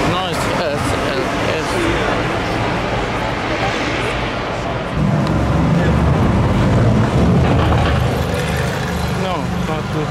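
A sports car engine rumbles deeply as it drives along a street.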